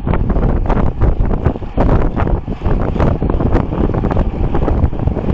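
Wind rushes loudly past the microphone outdoors.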